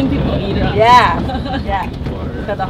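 A woman laughs loudly and happily close by.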